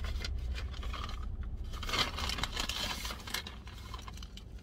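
A paper bag rustles and crinkles.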